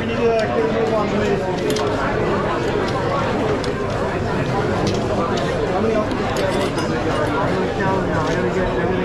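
Many people chatter in a busy room.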